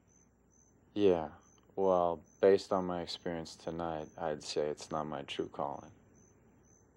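A young man speaks quietly and earnestly nearby.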